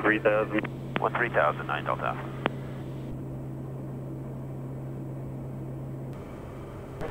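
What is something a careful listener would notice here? A small plane's engine drones steadily inside the cabin.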